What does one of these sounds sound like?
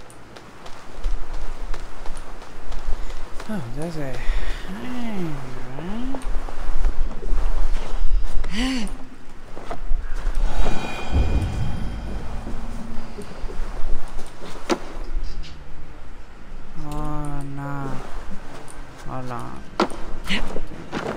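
A fire crackles softly nearby.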